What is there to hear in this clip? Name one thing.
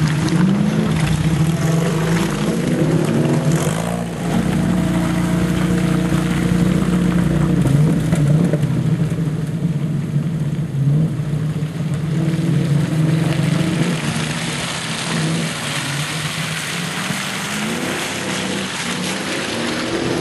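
A four-wheel-drive engine idles and revs nearby.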